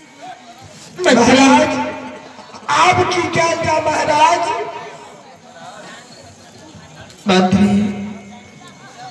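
A woman sings loudly through a loudspeaker in bursts.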